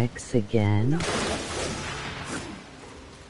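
A heavy blow lands with a dusty crash.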